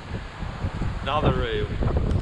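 A man speaks cheerfully close to the microphone.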